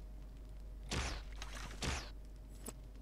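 A blade swishes and strikes.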